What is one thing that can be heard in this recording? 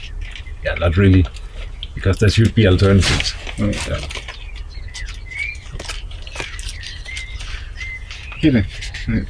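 A man speaks calmly and close by, in short phrases.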